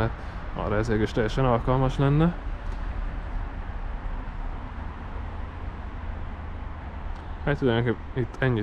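Wind blows steadily outdoors in the open.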